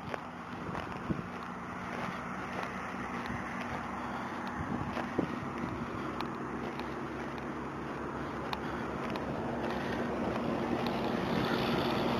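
Traffic rumbles steadily in the distance.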